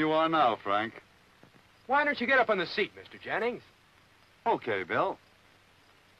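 Men speak calmly nearby, heard through an old film soundtrack.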